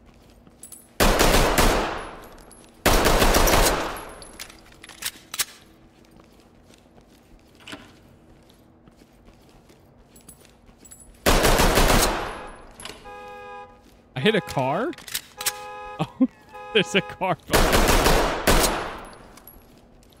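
Pistol shots boom loudly and echo.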